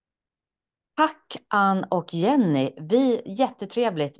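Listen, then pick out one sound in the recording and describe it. A middle-aged woman speaks calmly over an online call.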